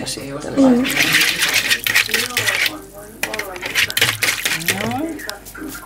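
A whisk beats liquid briskly in a bowl.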